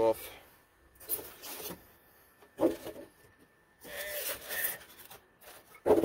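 Styrofoam packing scrapes and squeaks against a cardboard box.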